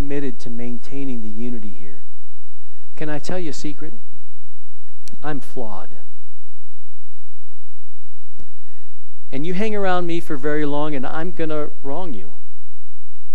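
A man speaks with animation through a microphone in a large room, pausing between phrases.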